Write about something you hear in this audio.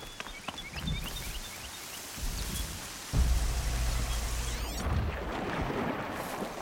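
Wind gusts loudly through tall grass.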